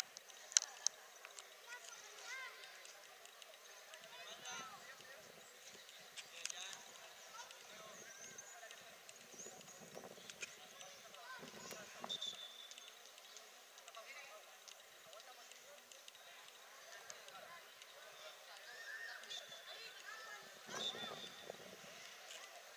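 Children shout and call out to each other on an open outdoor pitch.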